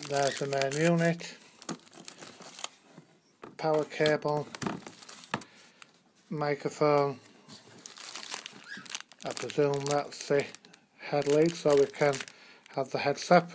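Plastic wrapping crinkles as hands handle it.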